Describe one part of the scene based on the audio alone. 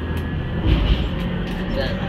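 A bus engine hums close by.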